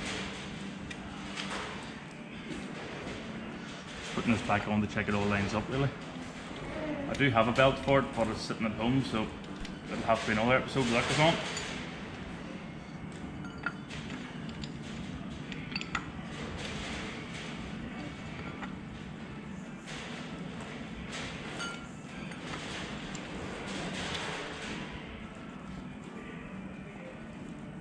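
Metal parts click and clink as a man handles an engine pulley.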